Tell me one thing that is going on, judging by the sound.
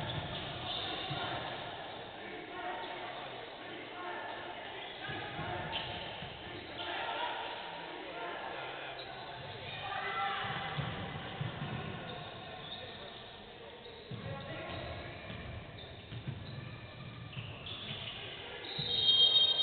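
Basketball shoes squeak sharply on a hard court in a large echoing hall.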